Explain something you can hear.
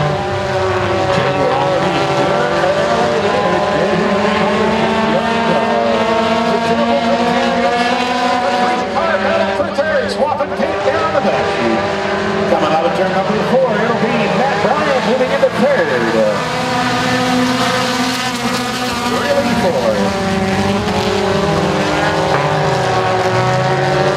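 Several race car engines roar and rev loudly around a dirt track.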